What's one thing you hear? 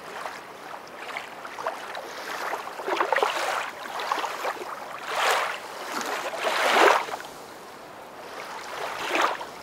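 A dog paddles and splashes through water.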